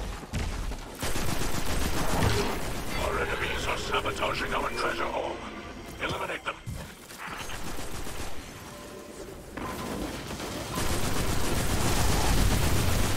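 Gunshots fire in quick bursts amid loud blasts.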